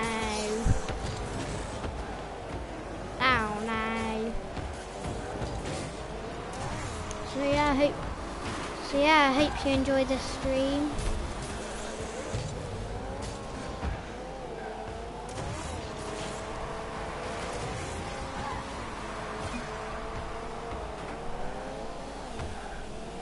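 A game car's engine hums and revs steadily.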